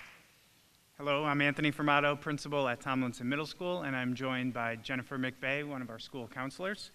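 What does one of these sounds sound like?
A man speaks calmly into a microphone, heard through loudspeakers in a large hall.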